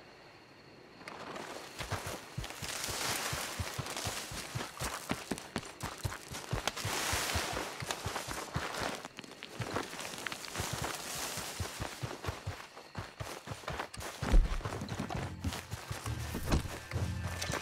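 Footsteps rustle quickly through tall grass and brush.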